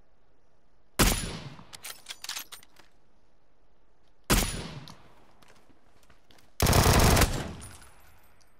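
A rifle fires loud single shots that echo away outdoors.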